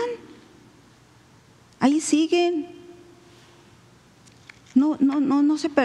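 A middle-aged woman speaks into a microphone in a slow, drawn-out manner, with pauses.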